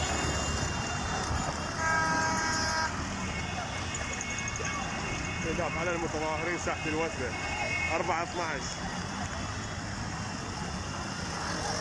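Motor rickshaw engines putter and drone nearby.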